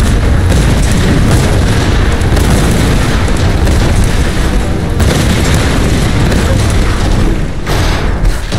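Wooden beams creak and crash as a structure collapses.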